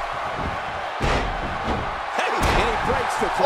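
Heavy thuds of bodies hitting a wrestling mat.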